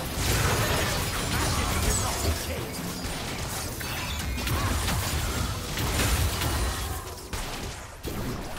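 Magic spells crackle, whoosh and burst in a fast game battle.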